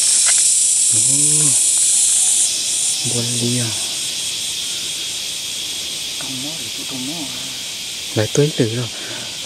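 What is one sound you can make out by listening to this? A young man talks calmly nearby.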